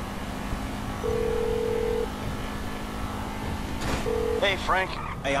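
A phone rings with a short beeping tone.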